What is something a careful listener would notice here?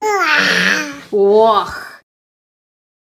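A cat yowls loudly and wails up and down.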